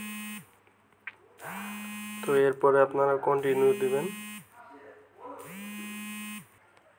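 A phone ringtone plays in repeated bursts.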